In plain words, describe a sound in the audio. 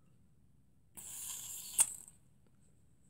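Gas hisses sharply from a pressurised can.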